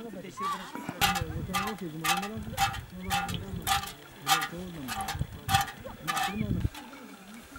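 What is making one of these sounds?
Milk squirts in quick, regular spurts into a metal pot.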